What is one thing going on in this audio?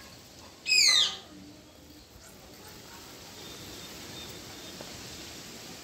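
A spray bottle hisses as it squirts water.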